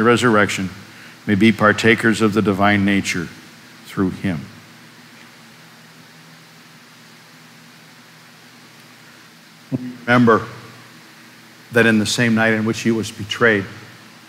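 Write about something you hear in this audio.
A middle-aged man speaks calmly and slowly into a microphone in a reverberant room.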